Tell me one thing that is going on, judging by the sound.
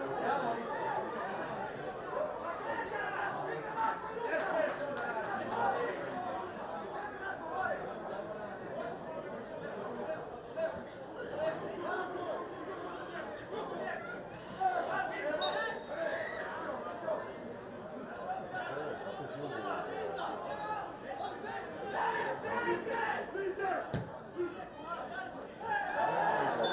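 A crowd of spectators murmurs and calls out in an open stadium.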